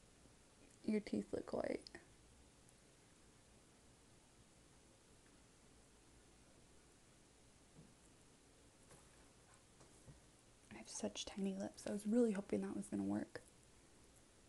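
A young woman speaks softly and close up.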